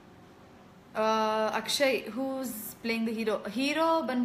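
A young woman sings softly close by.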